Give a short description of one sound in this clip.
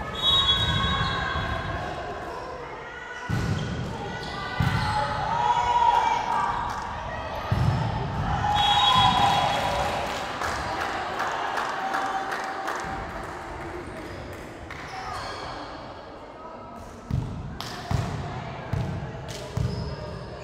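A volleyball is struck with sharp thumps in a large echoing hall.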